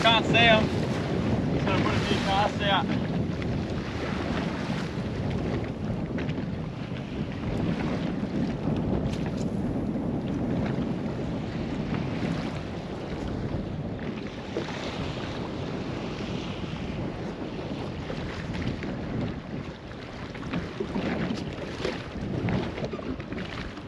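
Wind blows past.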